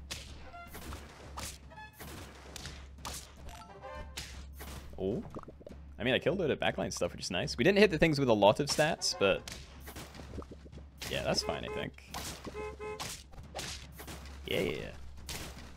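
Cartoonish game sound effects pop and thud as creatures attack.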